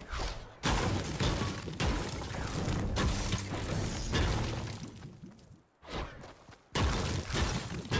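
A pickaxe strikes stone and wood with sharp repeated knocks.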